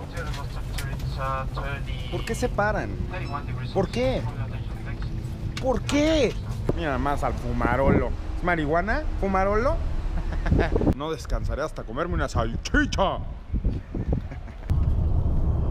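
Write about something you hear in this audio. A young man talks animatedly close to the microphone.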